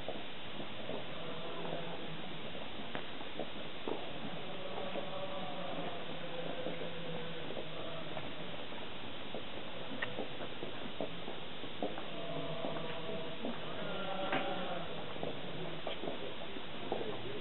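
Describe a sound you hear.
Adults murmur and talk quietly in a crowd outdoors.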